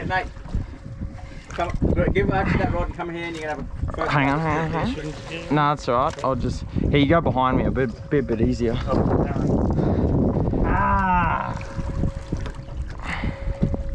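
Water splashes against a boat's side.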